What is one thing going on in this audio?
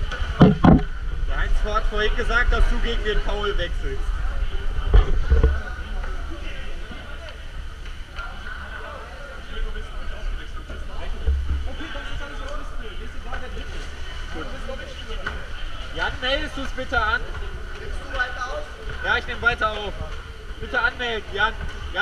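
Men talk and call out nearby in an echoing hall.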